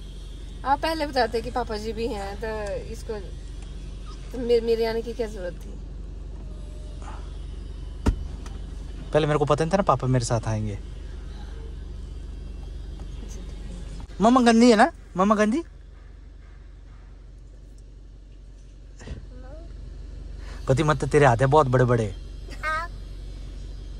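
A young woman talks close by in a gentle, playful voice.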